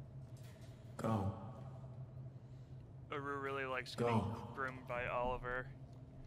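A man speaks forcefully and loudly to a crowd.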